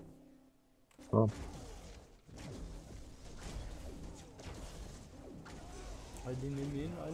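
Magic blasts and explosions crackle and boom during a fight.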